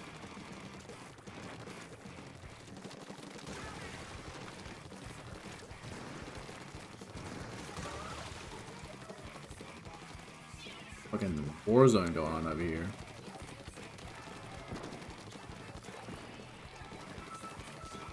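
Game weapons splatter and spray ink.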